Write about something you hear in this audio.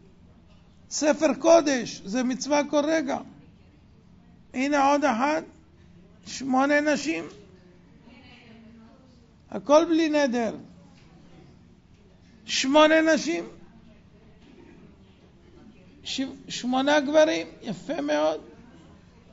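An elderly man speaks with animation into a microphone, in short bursts with pauses.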